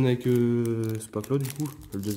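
A foil card wrapper crinkles as it is handled.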